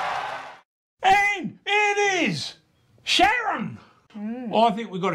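A man shouts with animation close by.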